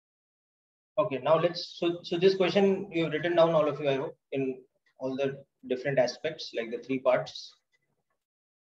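A man speaks calmly into a microphone, heard as if over an online call.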